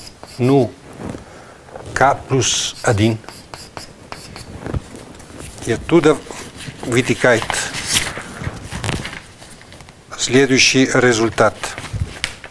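An elderly man lectures slowly, with pauses.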